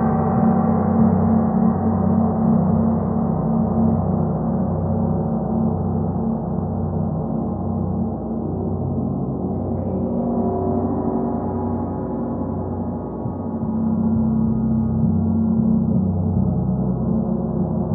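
A large gong is played continuously, its deep humming wash swelling and ebbing.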